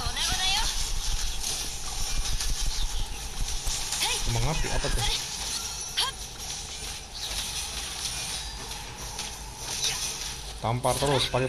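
Game battle effects clash and whoosh loudly.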